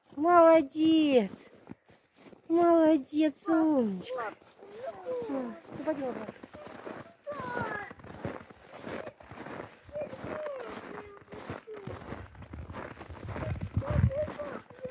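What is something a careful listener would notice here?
Snow crunches underfoot.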